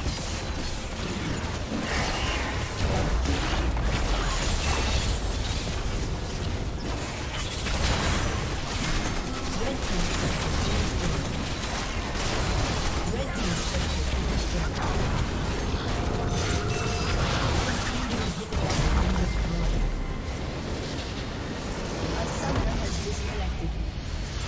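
Game spell blasts and impacts crackle and boom in a busy battle.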